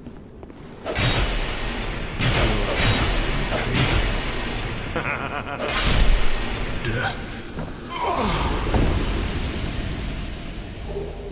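Blades strike and thud in a short fight.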